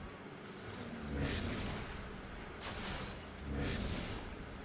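A crackling electric blast hums and whooshes in bursts.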